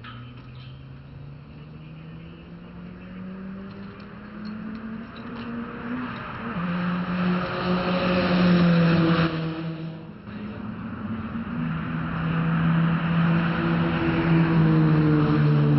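Racing car engines roar down a track, swelling loudly as a car speeds close by.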